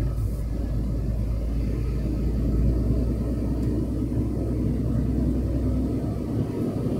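Wind rumbles steadily and loudly, outdoors.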